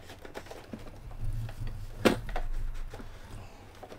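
Small plastic objects click and knock as they are handled close by.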